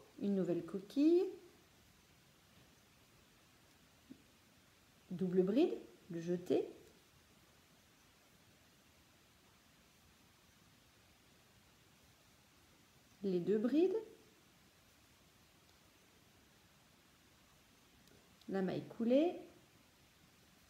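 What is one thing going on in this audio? A woman talks calmly and quietly, close by, in short bursts.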